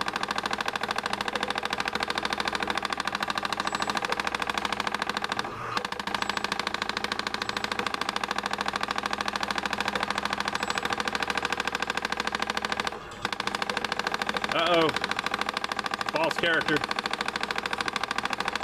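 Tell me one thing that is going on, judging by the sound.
Fast electronic game music plays steadily through a small loudspeaker.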